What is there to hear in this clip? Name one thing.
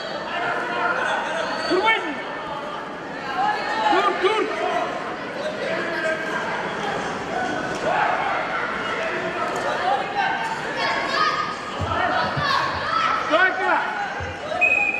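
Wrestlers' bodies thump and scuffle on a mat.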